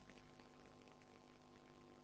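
A man speaks quietly through a microphone.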